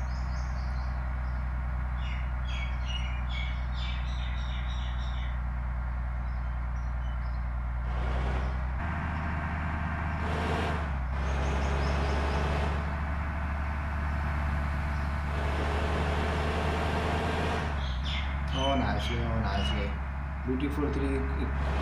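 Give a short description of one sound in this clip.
A bus engine hums steadily and rises as it speeds up.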